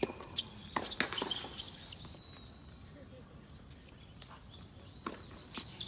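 Tennis rackets strike a ball back and forth outdoors.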